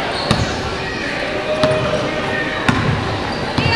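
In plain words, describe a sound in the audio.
A basketball thuds on a hardwood floor in a large echoing gym.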